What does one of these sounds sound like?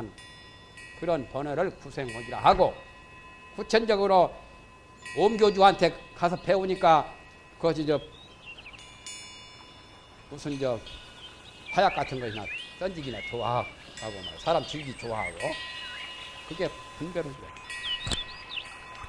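A middle-aged man lectures calmly through a microphone.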